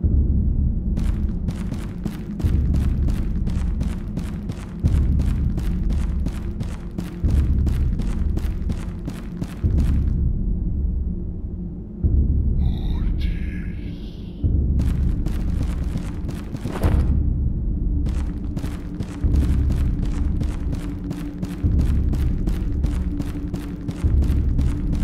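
Footsteps tread steadily on stone steps.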